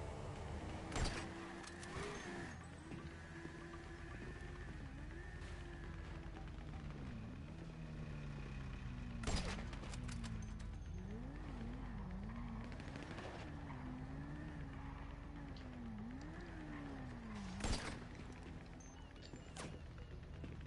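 A sniper rifle fires loud single shots that echo.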